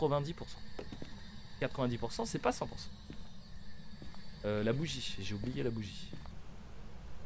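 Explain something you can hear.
A young man talks through a microphone with animation.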